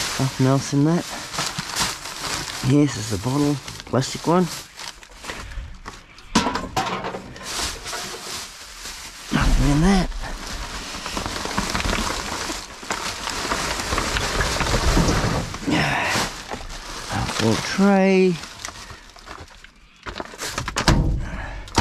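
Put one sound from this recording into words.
Plastic bags rustle and crinkle as hands dig through them.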